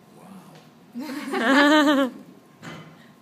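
A man laughs.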